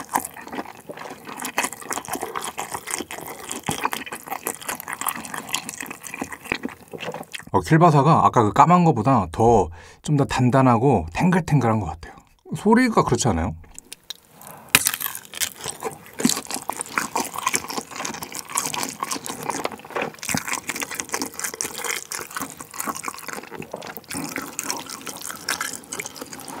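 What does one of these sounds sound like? A young man chews and slurps food loudly close to a microphone.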